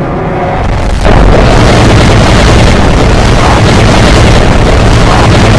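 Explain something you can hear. Rocket thrusters roar steadily.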